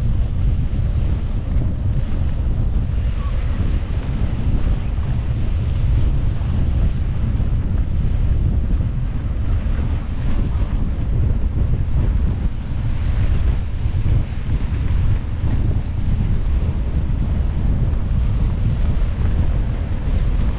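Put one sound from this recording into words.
Bicycle tyres crunch over a dirt road.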